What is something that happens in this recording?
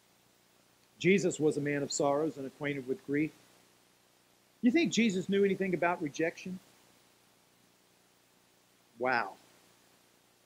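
A middle-aged man speaks calmly into a microphone, in short phrases with pauses.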